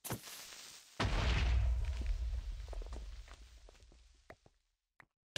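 A loud explosion booms and its rumble slowly fades.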